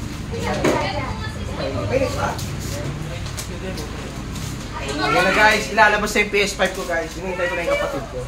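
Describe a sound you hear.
Several people talk and call out with animation close by.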